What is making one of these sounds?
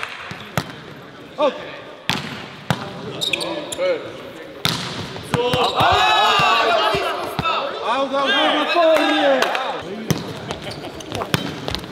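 A volleyball is struck hard with sharp slaps.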